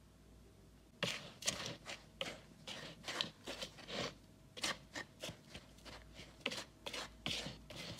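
A whisk scrapes and clinks through flour in a bowl.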